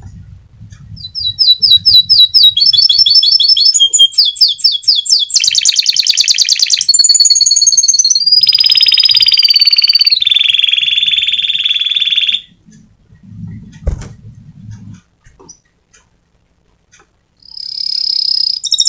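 A small bird sings a loud, fast, trilling song up close.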